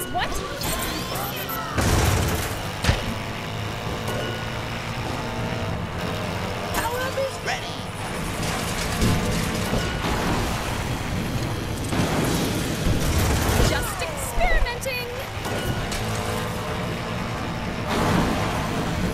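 Game sound effects zap and whoosh.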